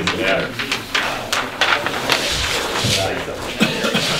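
Large paper sheets rustle and crinkle.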